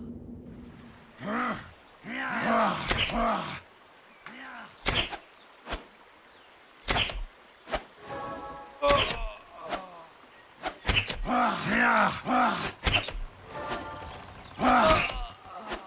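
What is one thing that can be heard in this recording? Video game combat sound effects play.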